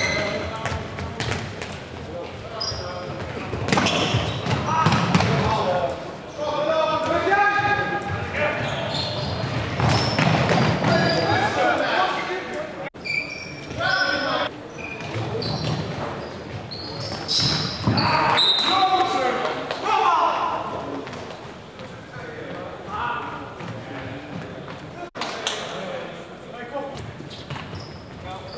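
A ball is kicked with sharp thuds in an echoing hall.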